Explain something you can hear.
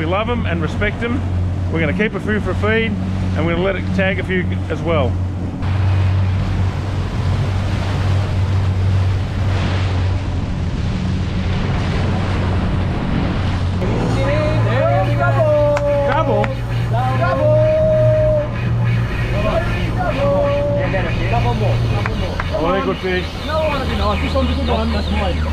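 A boat engine hums steadily throughout.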